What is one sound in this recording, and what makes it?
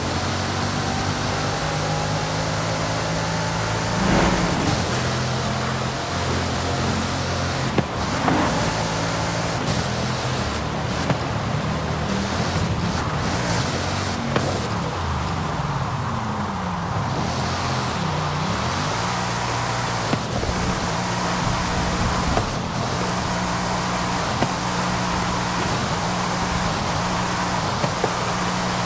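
A powerful sports car engine roars at high speed, shifting through gears and dropping in pitch as the car slows.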